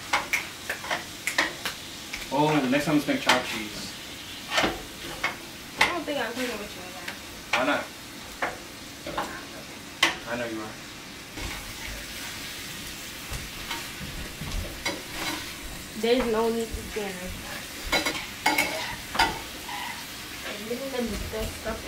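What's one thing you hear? Food sizzles in a pan.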